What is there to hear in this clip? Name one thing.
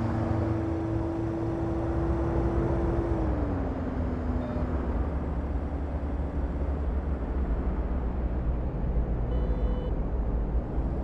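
Tyres rumble on a road at speed.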